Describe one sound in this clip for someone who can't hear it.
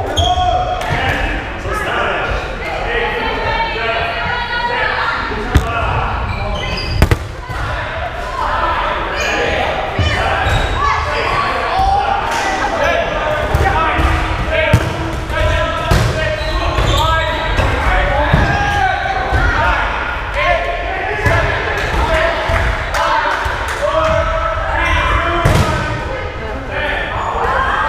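Children chatter and shout in a large echoing gym.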